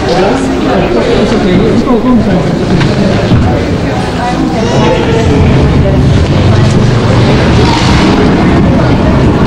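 Men, women and children chatter all around in a large echoing hall.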